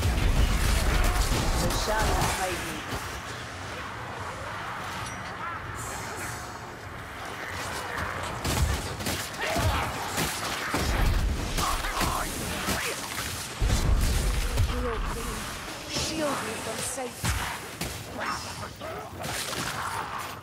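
Blades hack and slash into flesh in a fierce melee.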